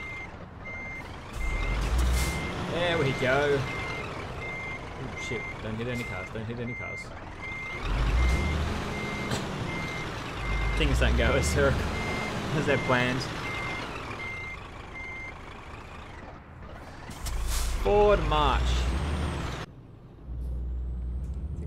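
A diesel truck engine rumbles as the truck drives off.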